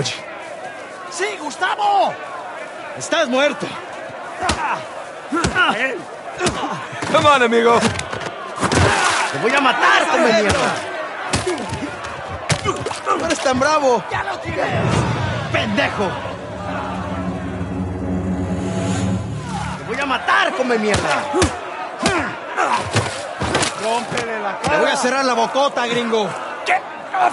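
A man shouts angrily at close range.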